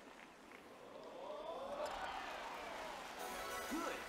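A golf ball drops into the hole with a rattle.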